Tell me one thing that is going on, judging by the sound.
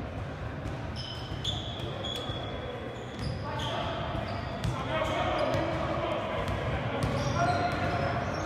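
Sneakers squeak sharply on a hardwood floor in an echoing gym.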